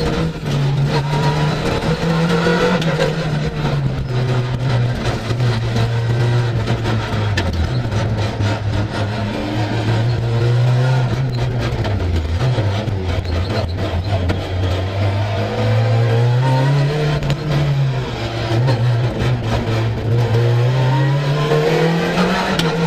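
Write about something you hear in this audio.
A four-cylinder rally car engine revs hard, rising and falling through the gears.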